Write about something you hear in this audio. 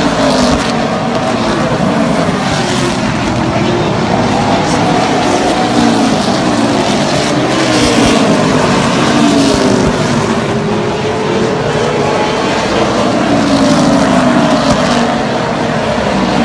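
Race car engines roar and rev loudly.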